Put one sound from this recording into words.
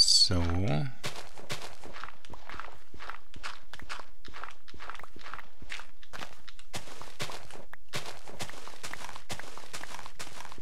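A shovel digs into dirt with quick, repeated crunches.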